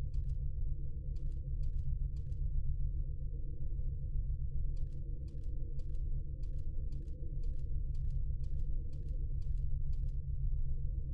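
Footsteps tap at an even pace.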